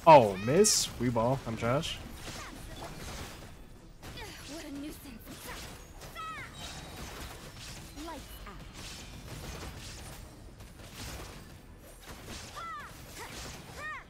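Electric blasts crackle and burst in a game battle.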